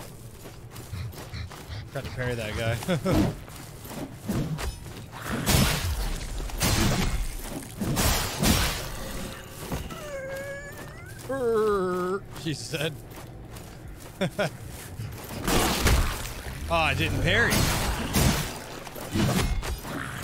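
Sword blows clang and thud in combat.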